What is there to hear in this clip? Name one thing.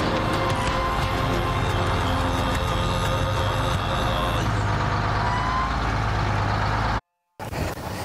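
A heavy truck engine roars as the truck drives over rough ground.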